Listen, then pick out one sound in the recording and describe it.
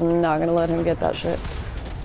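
A scoped rifle fires in a video game.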